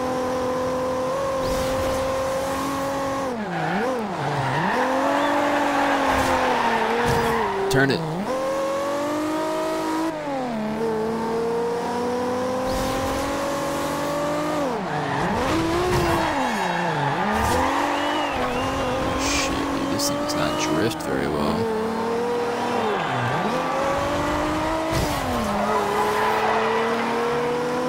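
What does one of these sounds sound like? A sports car engine revs hard, dropping and rising in pitch as the gears shift.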